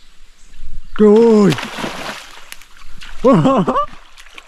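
A fish splashes and thrashes at the surface of the water.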